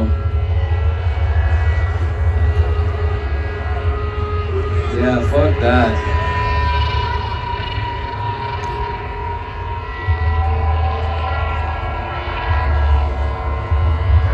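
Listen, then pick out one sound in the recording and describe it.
Loud rock music plays through large outdoor loudspeakers.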